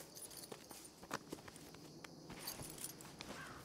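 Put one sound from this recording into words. A leather saddle creaks as a rider climbs onto a horse.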